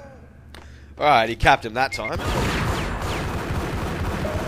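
Gunshots fire in quick bursts, echoing off stone walls.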